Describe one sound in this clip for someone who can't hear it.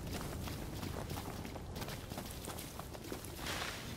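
Leaves and bushes rustle as runners push through them.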